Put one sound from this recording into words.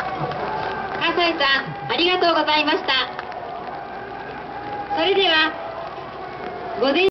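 A man speaks loudly over a loudspeaker.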